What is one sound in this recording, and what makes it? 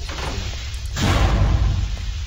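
A heavy metal door slides shut with a loud rumble.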